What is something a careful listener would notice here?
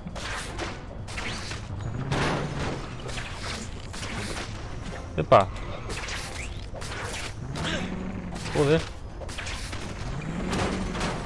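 Webs shoot out with sharp whooshing swishes.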